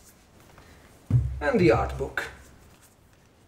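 Hands pick up and handle a book, with rustling and soft bumps.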